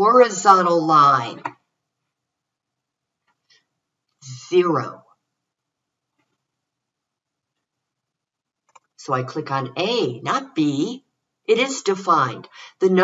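An older woman explains calmly, close to a microphone, with pauses.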